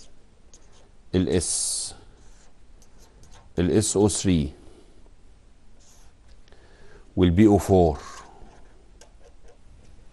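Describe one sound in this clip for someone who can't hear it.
A marker pen scratches on paper.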